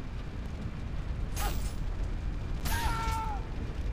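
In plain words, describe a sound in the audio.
Sharp clashing hits ring out.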